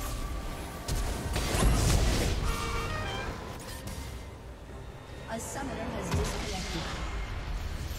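Game spell effects crackle and blast in a fight.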